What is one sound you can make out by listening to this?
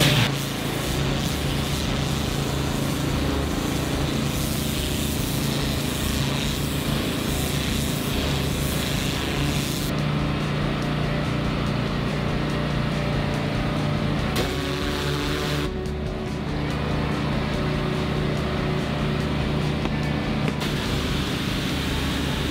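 A pressure washer sprays water hard onto wet concrete with a loud hiss.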